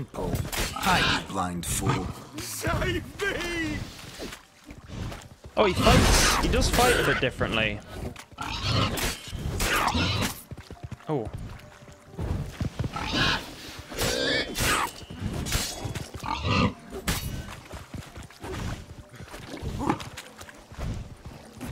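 Swords swing and strike in a fast fight.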